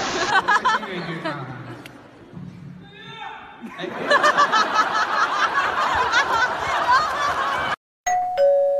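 A crowd shouts and cheers in a large hall.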